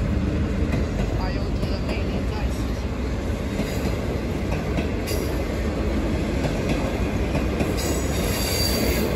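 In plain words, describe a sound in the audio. A passenger train rumbles past on the tracks.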